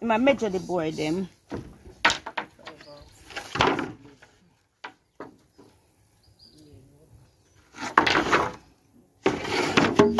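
Wooden boards knock and clatter as they are handled.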